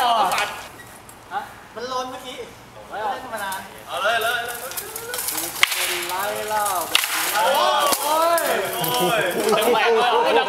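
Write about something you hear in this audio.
Young men shout and call out nearby, outdoors.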